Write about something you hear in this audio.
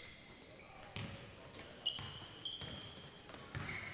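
A basketball bounces on a hardwood floor in an echoing gym.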